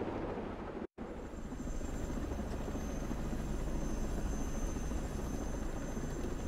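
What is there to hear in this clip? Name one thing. A low engine rumble drones steadily inside a cabin.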